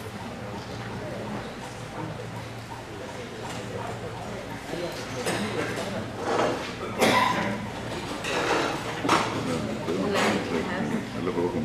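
A crowd of men and women chatters in a room.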